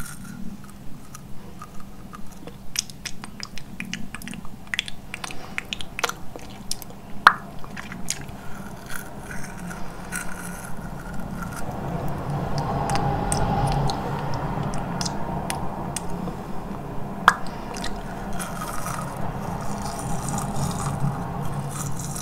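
A bristle brush brushes against lips close to a microphone.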